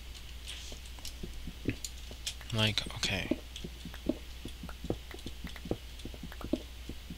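A pickaxe chips repeatedly at stone with quick, crunching taps.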